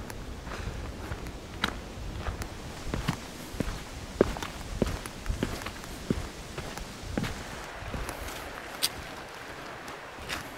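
Footsteps crunch on dry leaves and a dirt path.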